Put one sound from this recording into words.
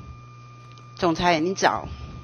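A middle-aged woman speaks briefly and calmly into a microphone.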